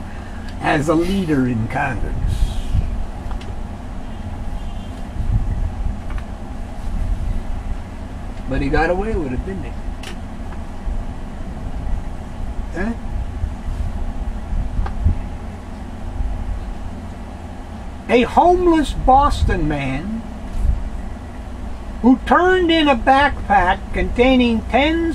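A man speaks calmly, close by, in short bursts with pauses.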